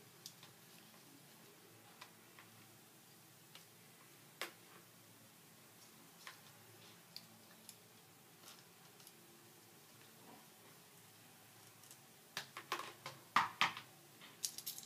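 A curling iron's clamp clicks open and shut.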